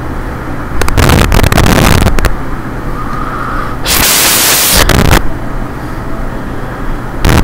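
A waterfall rushes.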